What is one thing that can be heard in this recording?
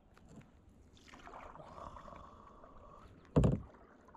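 A paddle dips and splashes in the water.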